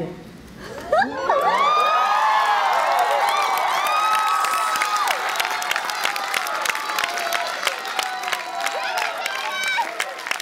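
A crowd cheers and whoops loudly in a large hall.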